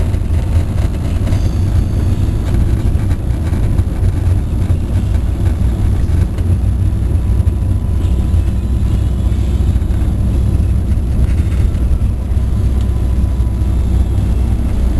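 Heavy rain drums on a car's windscreen and roof.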